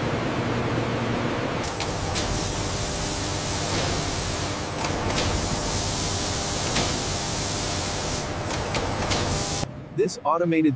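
Industrial fans and machinery whir steadily.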